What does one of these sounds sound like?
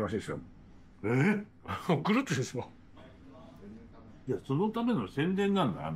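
A man laughs close by.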